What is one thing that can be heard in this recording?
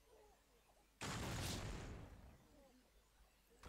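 A heavy gate slams open with a loud booming crash.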